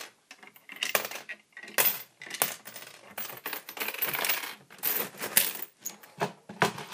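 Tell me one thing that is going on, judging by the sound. Metal coins clink and jingle as they are pushed along.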